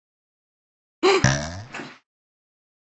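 A second, deeper cartoon voice speaks briefly.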